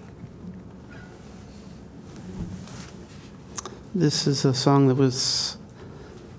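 An acoustic guitar is strummed.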